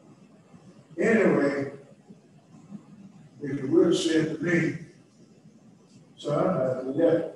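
An elderly man speaks calmly into a microphone in short bursts.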